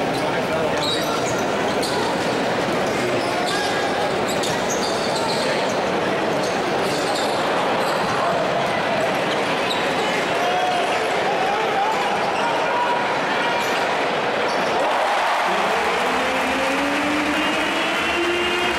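A large crowd cheers and murmurs throughout in an echoing arena.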